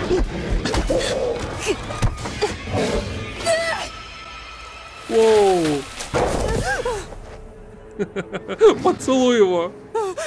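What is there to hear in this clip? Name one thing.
A woman grunts and gasps as she struggles.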